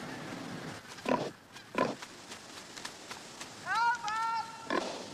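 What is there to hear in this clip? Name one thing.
A wild boar grunts and snorts.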